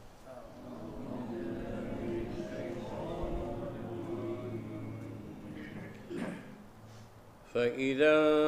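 An elderly man reads out slowly and calmly into a microphone.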